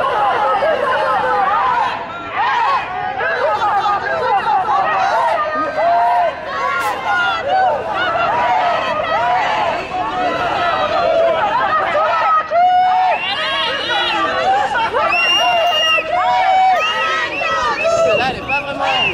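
A crowd of men and women chants and shouts loudly outdoors.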